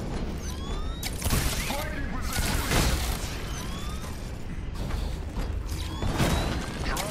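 Energy blasts fire in sharp, whooshing bursts.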